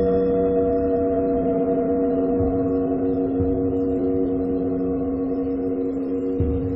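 A vibrating dish of water hums with a steady low tone.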